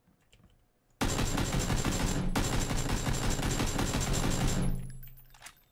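An automatic rifle fires a long, rapid burst indoors.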